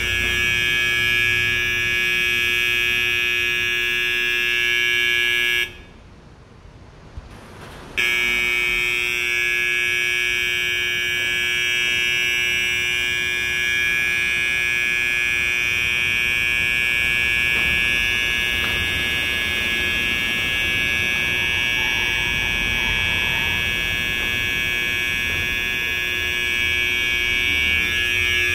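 An alarm beacon sounds a loud, steady electronic tone that echoes in a large hard space.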